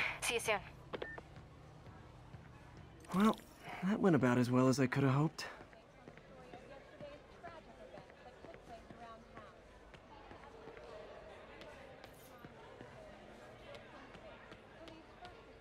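Footsteps tread across a wooden floor.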